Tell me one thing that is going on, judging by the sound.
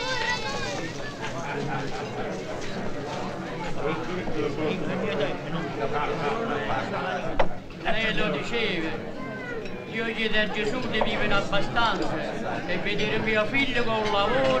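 A crowd of men and women chatter and talk over one another in a busy room.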